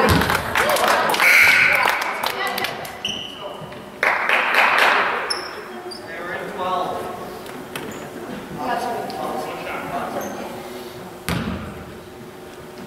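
Children and adults chatter nearby.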